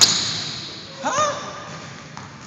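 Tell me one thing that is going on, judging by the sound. Sneakers squeak on the floor.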